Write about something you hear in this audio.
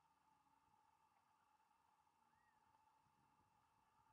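A golf club strikes a ball with a soft tap.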